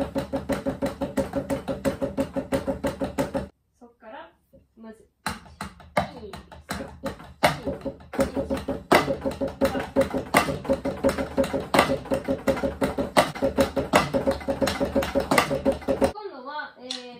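Drumsticks tap a quick steady beat on a practice pad close by.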